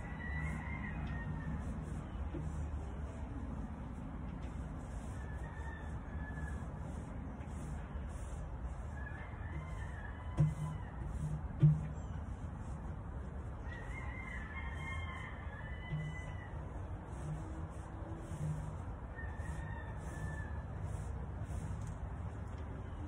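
A ceiling fan whirs steadily overhead.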